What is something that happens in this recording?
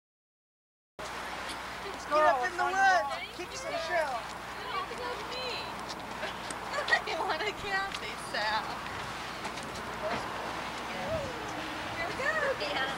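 Young women chat close by outdoors.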